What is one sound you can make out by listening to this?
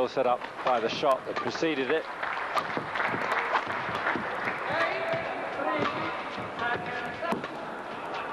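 A racket strikes a shuttlecock with sharp smacks.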